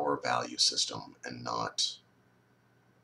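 A man speaks calmly and close to a microphone, then falls silent.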